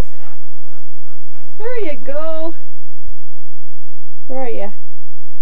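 A dog bounds through deep snow with soft crunching.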